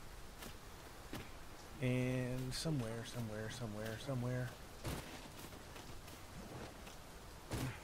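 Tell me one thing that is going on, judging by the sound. Footsteps rustle through grass and undergrowth.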